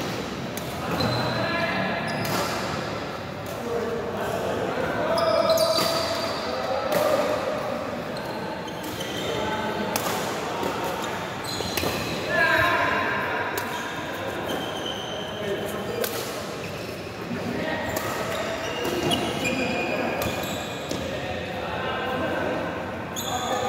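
Shuttlecocks are struck with rackets in sharp, quick pops.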